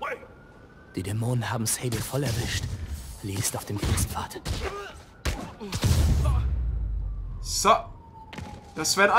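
Heavy blows and thuds land in a scuffle.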